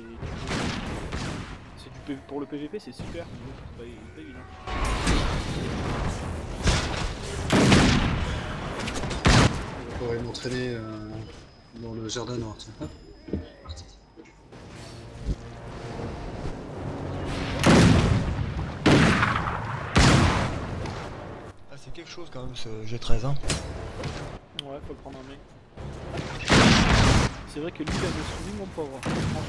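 Swords clash and magic bursts crackle in a game battle.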